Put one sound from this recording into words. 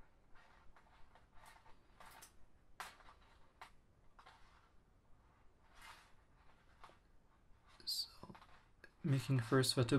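Plastic cords rustle and creak as fingers weave them.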